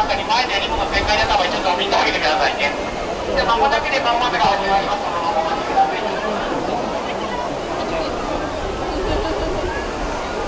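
Dolphins squeak and whistle near the surface.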